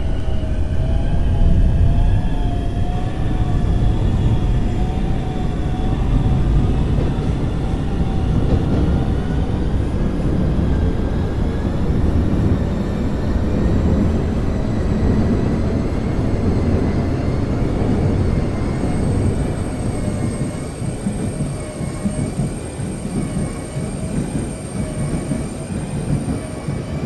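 A subway train rumbles and hums steadily as it runs along the track.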